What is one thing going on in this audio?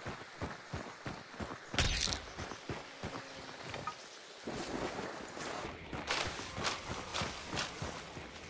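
Leafy branches and tall stalks rustle as someone pushes through them.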